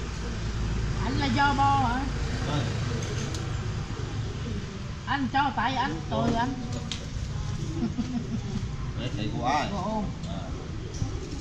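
A middle-aged woman talks casually nearby.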